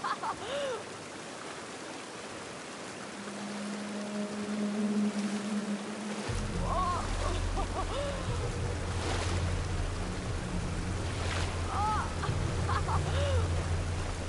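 Water rushes and splashes steadily from a waterfall into a pool.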